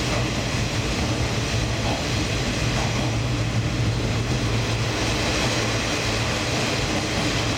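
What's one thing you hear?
Train wheels clatter over the track joints.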